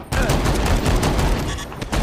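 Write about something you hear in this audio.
A gun fires with a loud bang.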